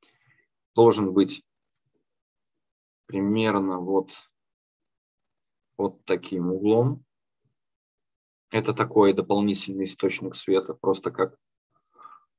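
A young man speaks calmly over an online call, in short phrases with pauses.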